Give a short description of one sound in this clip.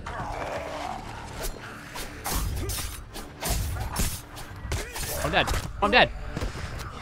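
Heavy blows land with dull thuds.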